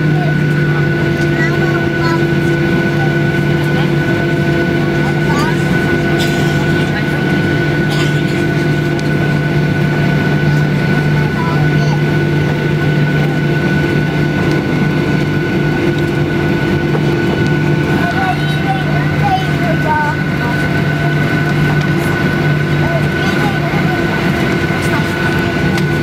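An airliner rumbles along a runway while taxiing.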